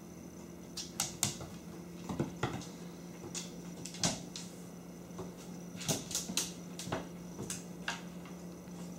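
A plastic toy clatters and skids across a hard floor.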